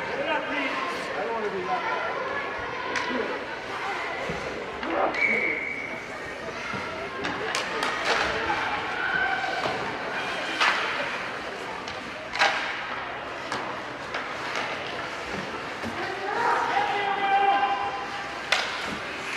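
Hockey sticks clack against the puck and each other.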